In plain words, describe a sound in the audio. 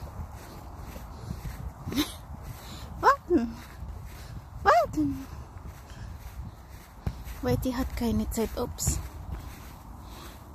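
Footsteps crunch softly on frosty grass outdoors.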